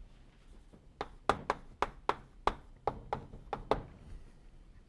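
Chalk taps and clicks sharply on a blackboard.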